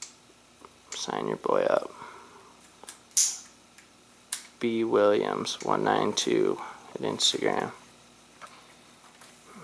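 Metal parts clink and click as a dirt bike is handled.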